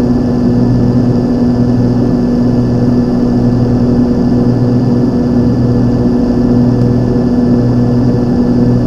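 Aircraft engines drone steadily with a low hum inside the cockpit.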